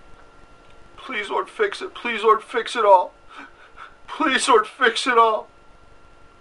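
A man speaks close by in a choked, tearful voice.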